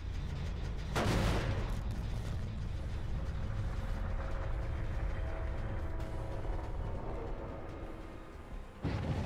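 A motor rumbles steadily close by.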